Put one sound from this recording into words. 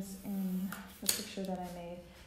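A plastic ruler clacks down onto a table.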